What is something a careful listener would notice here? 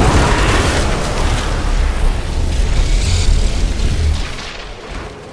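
Electric bolts crackle and buzz loudly.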